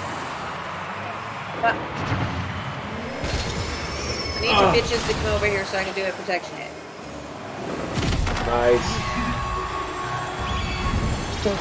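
A game car engine hums and boosts.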